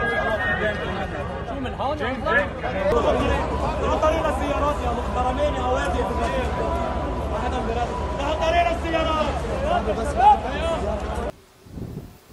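A crowd of men and women talk and shout outdoors.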